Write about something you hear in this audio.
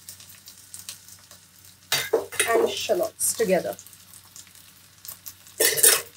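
Chopped vegetables drop into a pan.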